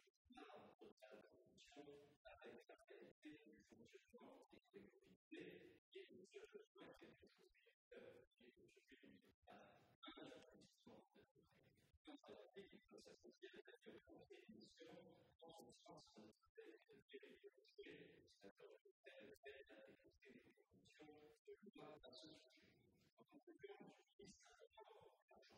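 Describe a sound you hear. A middle-aged man reads out a speech into a microphone in a large hall.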